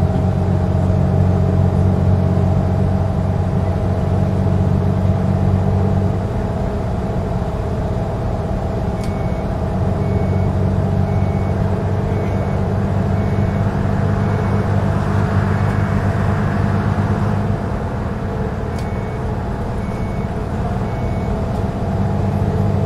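Tyres roll on a road with a steady rush.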